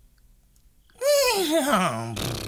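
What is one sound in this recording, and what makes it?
A performer voices a puppet in a high, sing-song cartoonish tone.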